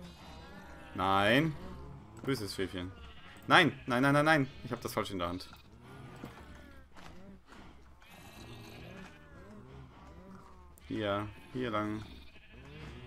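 Sheep bleat.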